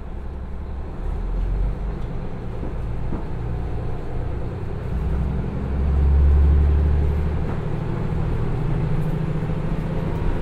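Train wheels roll slowly over the rails.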